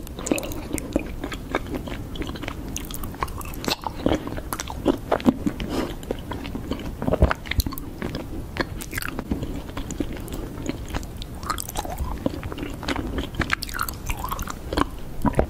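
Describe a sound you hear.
Sticky honeycomb squishes between fingers.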